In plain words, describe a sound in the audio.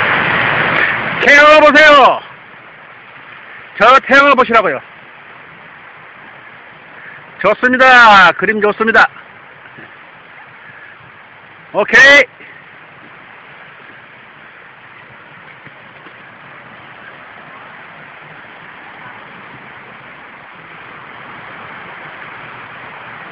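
Small waves wash onto a sandy beach far off.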